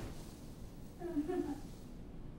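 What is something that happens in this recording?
A teenage boy murmurs softly nearby.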